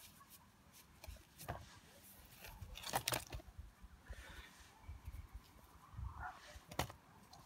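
Potatoes knock and rub together in a plastic crate.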